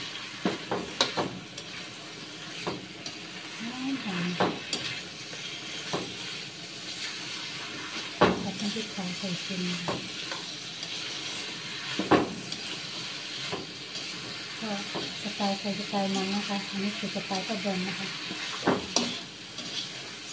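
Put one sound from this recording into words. A metal spatula scrapes and clatters against a wok while stir-frying.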